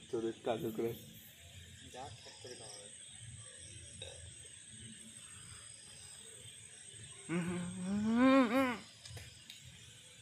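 A hand softly strokes a dog's fur.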